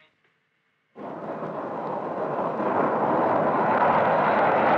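A jet engine roars as a plane takes off, growing louder.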